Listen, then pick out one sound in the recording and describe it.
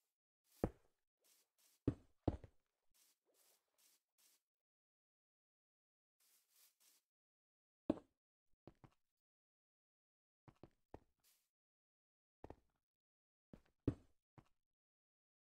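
Stone blocks are placed with short, dull thuds.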